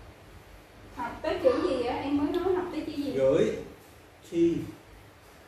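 A woman speaks clearly and calmly close by.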